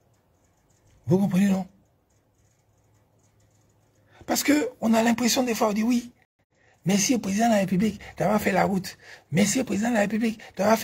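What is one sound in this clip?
A man speaks close up with animation, in short bursts.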